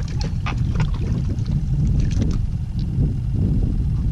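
A fish splashes as it is pulled from the water.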